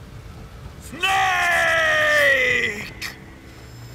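A man shouts loudly with a strained, falling voice.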